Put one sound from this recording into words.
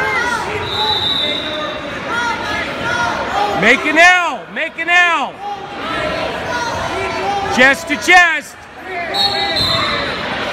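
Spectators in a large echoing gym call out and cheer.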